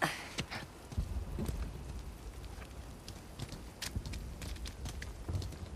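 Footsteps patter quickly on a hard rooftop.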